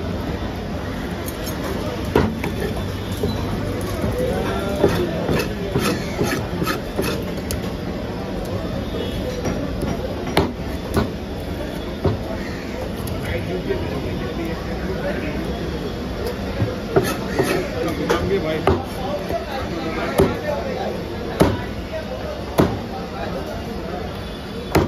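A cleaver chops through fish on a wooden chopping block.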